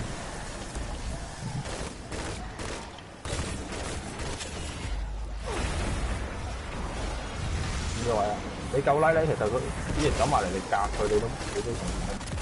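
A rifle fires rapid shots.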